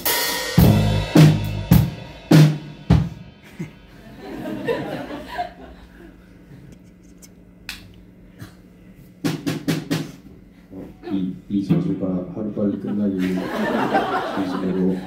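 Drums and cymbals crash loudly.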